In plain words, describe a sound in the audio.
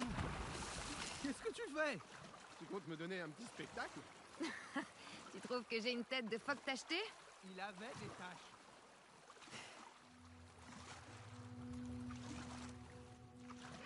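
Water sloshes steadily as someone swims.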